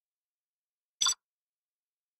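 A menu button gives a short beep.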